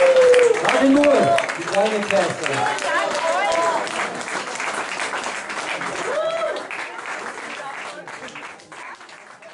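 A lively crowd cheers loudly.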